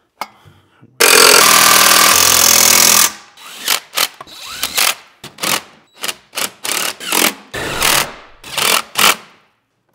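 An impact driver whirs and rattles in short bursts.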